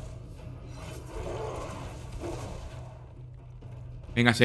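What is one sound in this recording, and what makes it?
Magic blasts and weapon strikes clash in a fight.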